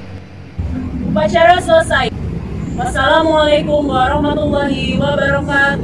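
A young woman reads aloud clearly into a microphone outdoors.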